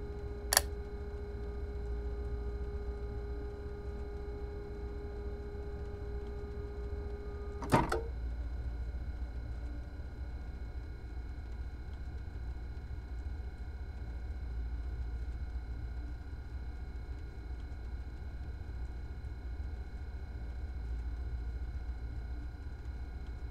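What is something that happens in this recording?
A train's electric motors hum low and steadily at a standstill.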